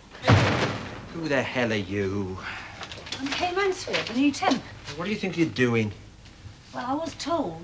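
A middle-aged man speaks loudly indoors.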